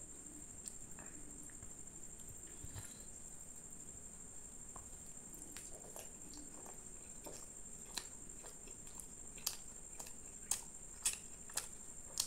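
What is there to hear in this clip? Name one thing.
Fingers squish into a thick wet curry.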